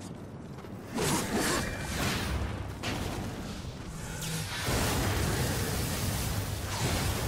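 Loud magical blasts and sword strikes crash.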